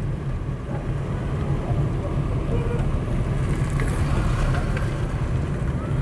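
An oncoming car passes by.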